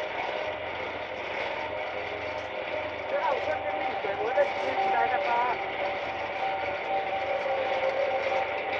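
A train hums and rumbles steadily along the rails through a tunnel.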